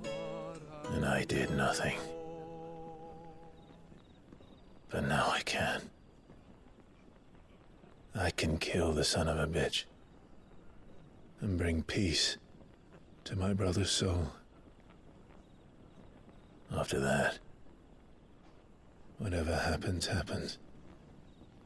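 A man speaks in a low, grave voice, in short phrases with pauses between them.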